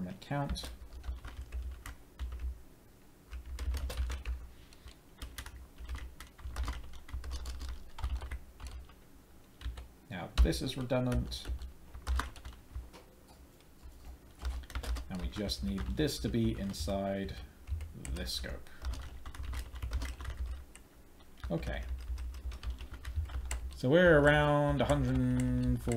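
Keys clatter on a computer keyboard in quick bursts.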